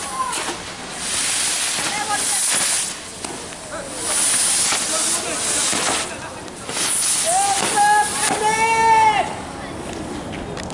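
Burning fireworks hiss and sputter loudly on the ground.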